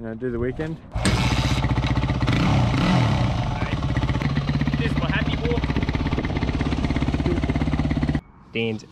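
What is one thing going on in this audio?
A motorcycle engine starts and idles with a loud, rough rumble.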